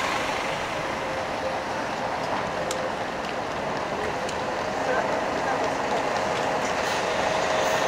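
A second bus engine hums as it approaches and passes close by.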